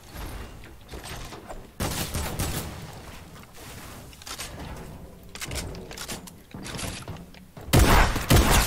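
Building pieces clatter and snap into place in quick bursts.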